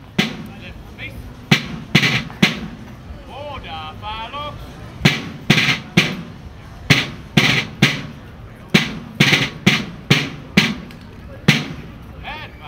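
A drum is struck in loud, sharp beats, out in the open.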